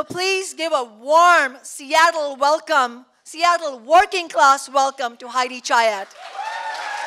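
A woman speaks into a microphone with animation.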